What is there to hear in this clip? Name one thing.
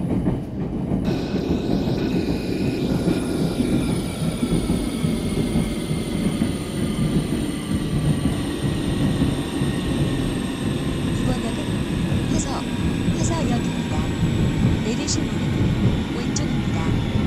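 A train's electric motor whines and slowly falls in pitch.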